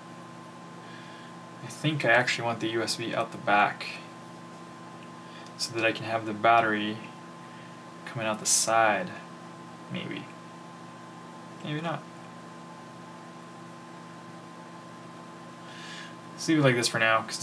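Hands handle a small drone frame, tapping it softly.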